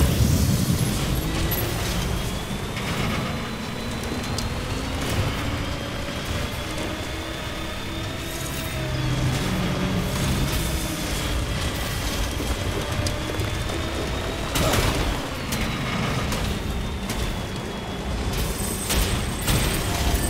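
Tyres crunch and bump over rocks.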